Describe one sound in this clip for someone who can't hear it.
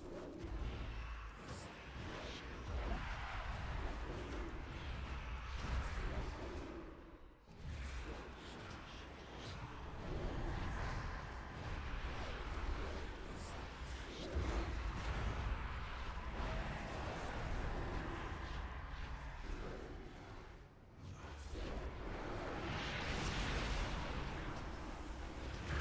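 Spells and weapon blows crash and whoosh again and again in a game fight.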